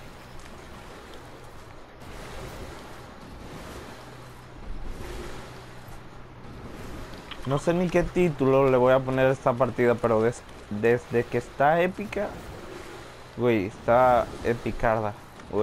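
Water splashes as a swimmer paddles along.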